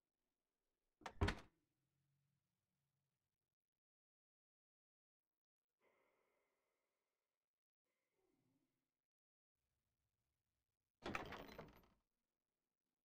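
A wooden chest creaks open and thuds shut.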